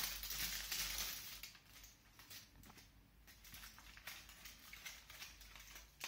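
Foil crinkles and rustles as it is unwrapped close by.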